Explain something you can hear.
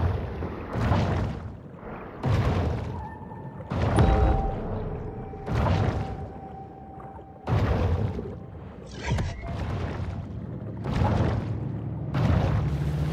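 Water surges and whooshes in repeated bursts as a large fish swims underwater.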